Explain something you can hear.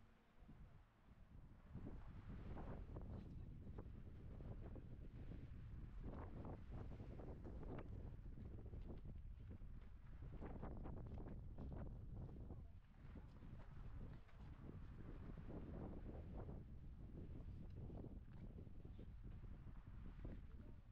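Strong wind gusts and buffets outdoors.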